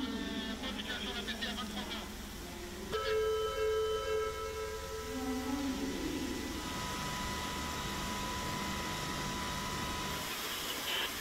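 Water jets spray and hiss loudly.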